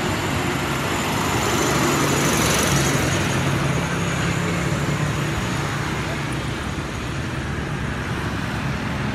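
A motorbike engine hums as it passes by on a road.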